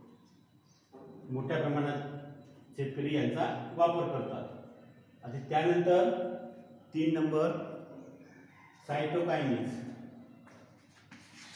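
A man speaks loudly and clearly, explaining in a room with some echo.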